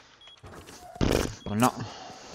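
A heavy door swings open with a loud thud.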